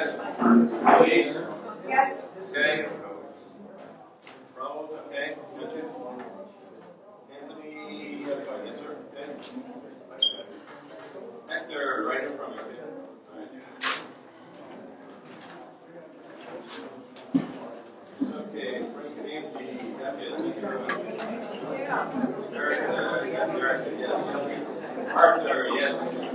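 Many men and women chatter at once in a crowded room.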